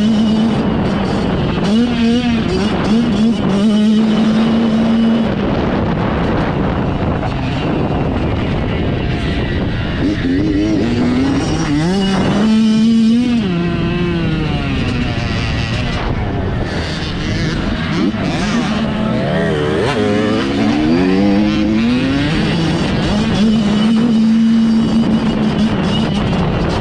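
A motorbike engine revs loudly up close, rising and falling in pitch.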